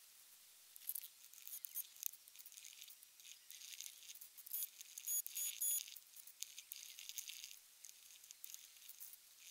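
Rubber gloves rustle and crinkle softly, close by.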